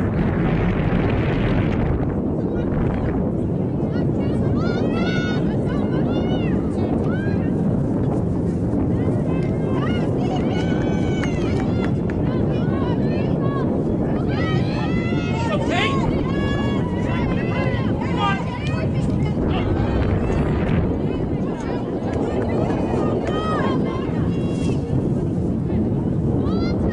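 Wind rumbles steadily against the microphone.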